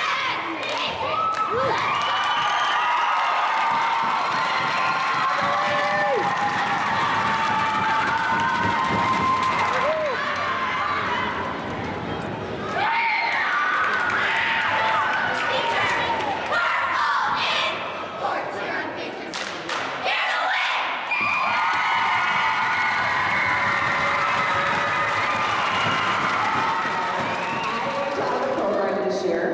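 Young girls shout a cheer in unison in a large echoing hall.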